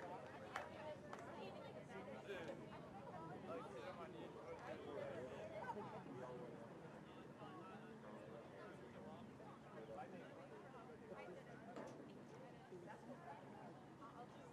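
Young men talk and call out to each other outdoors on an open field.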